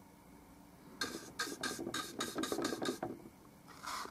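A paintbrush swirls and dabs thick paint on a palette.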